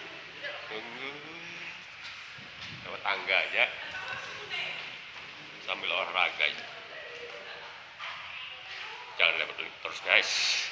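A young man talks close by, animated and loud.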